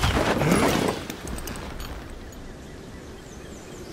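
A snowboard scrapes and hisses over soft snow.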